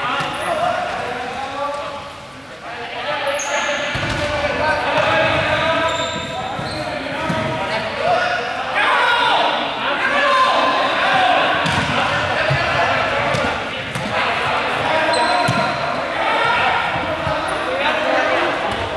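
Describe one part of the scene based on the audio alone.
Balls bounce on a hard floor, echoing.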